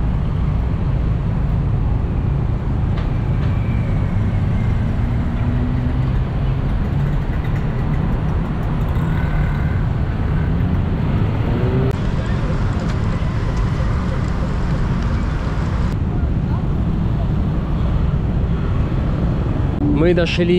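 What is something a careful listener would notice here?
City traffic rumbles steadily nearby, outdoors.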